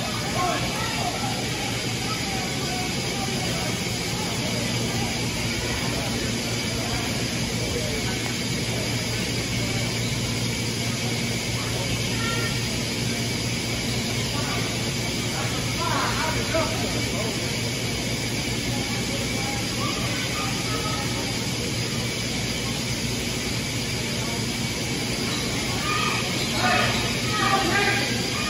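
Sneakers squeak on the hardwood court.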